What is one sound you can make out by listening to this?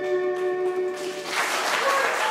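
A fiddle plays a tune.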